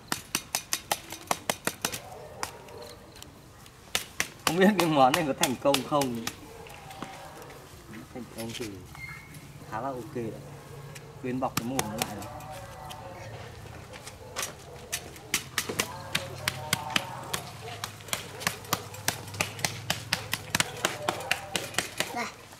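Hands pat and slap wet clay onto a wire grill.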